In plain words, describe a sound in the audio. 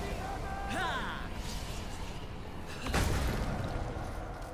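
A sword strikes with a sharp metallic clash.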